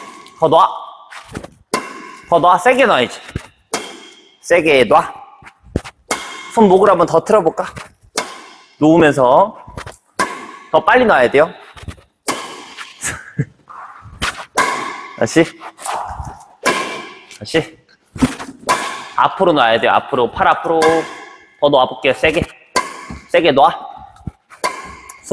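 A racket strikes a shuttlecock again and again with sharp pops.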